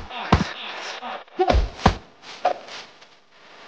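Heavy blows land in a fight, with sharp thuds and whooshes.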